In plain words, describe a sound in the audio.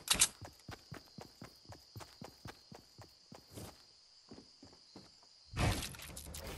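Footsteps patter quickly on grass and wood.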